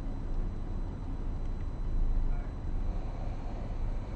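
A man speaks through a microphone over loudspeakers.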